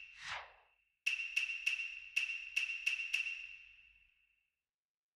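Menu selection chimes tick quickly several times.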